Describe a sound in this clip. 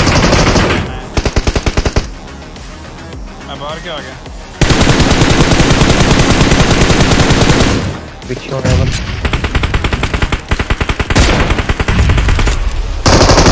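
Automatic rifle fire rattles in rapid, loud bursts.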